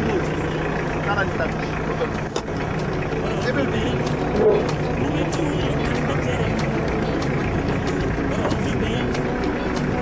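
A man talks with another man outdoors at night.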